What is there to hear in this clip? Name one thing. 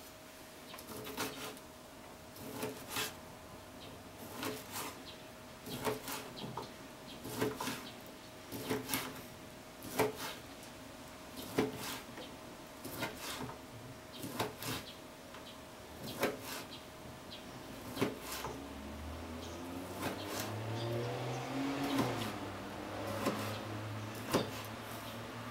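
A knife chops through a sausage onto a plastic cutting board with sharp, repeated knocks.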